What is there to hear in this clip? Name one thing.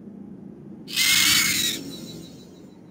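A magical beam of light strikes down with a loud whoosh.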